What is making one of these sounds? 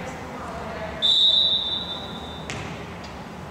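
A referee blows a long whistle blast.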